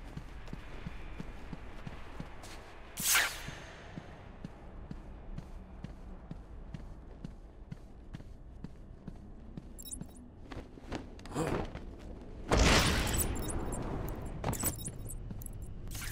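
Footsteps tap on a hard floor in a quiet, echoing room.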